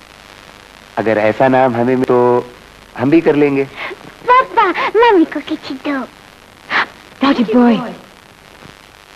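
A man speaks warmly and closely.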